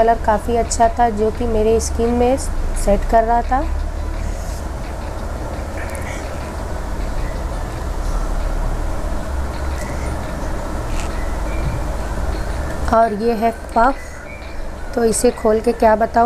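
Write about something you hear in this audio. A young woman speaks calmly and close to a microphone.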